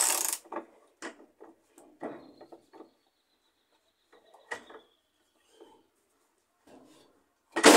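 Metal tools clink against metal parts.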